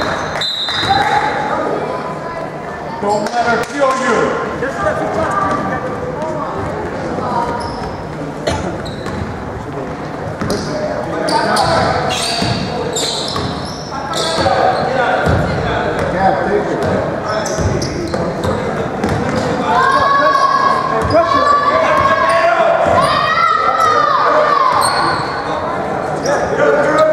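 Sneakers squeak on a hardwood court in an echoing gym.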